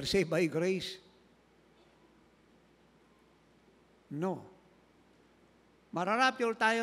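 An elderly man preaches slowly and emphatically into a microphone, with long pauses.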